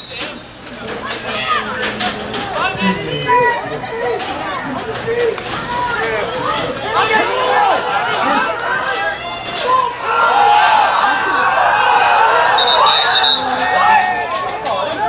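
A crowd of players and spectators shouts and cheers outdoors.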